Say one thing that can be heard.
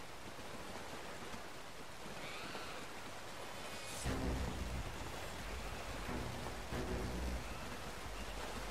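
A river rushes and splashes steadily.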